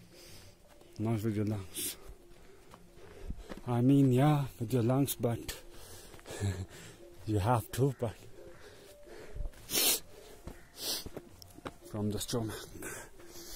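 A man speaks close up in short bursts.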